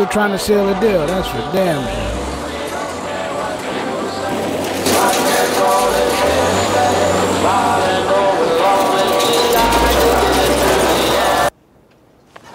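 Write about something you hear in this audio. A heavy bulldozer engine rumbles and roars.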